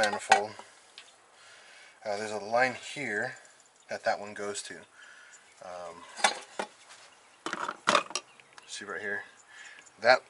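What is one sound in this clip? Metal engine parts clank and knock as they are handled.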